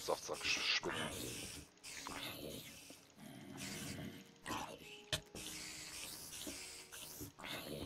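A spider hisses.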